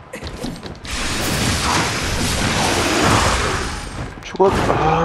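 An explosion bursts with a roar of fire.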